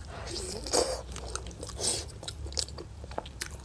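Meat tears apart with a wet, sticky sound.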